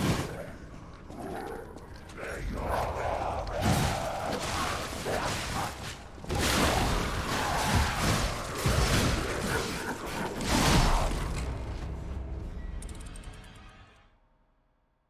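Swords clang and slash in a loud fight.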